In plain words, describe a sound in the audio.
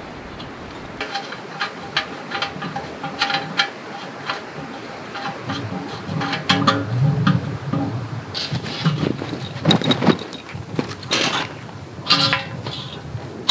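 Metal parts clink and clatter as a small stove is put together.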